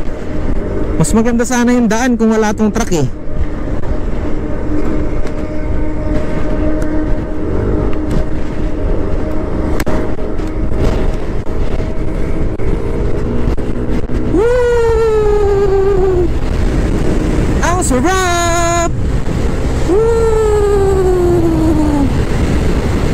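A motorbike engine revs up and drops in pitch as it shifts gears.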